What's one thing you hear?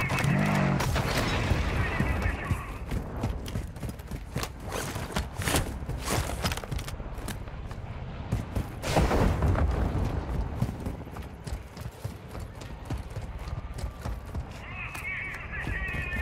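Footsteps crunch quickly on dirt and gravel.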